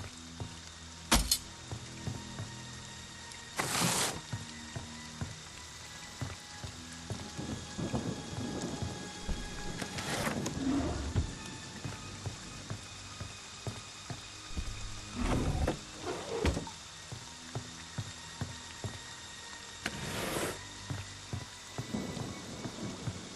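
Footsteps thud slowly on a creaky wooden floor.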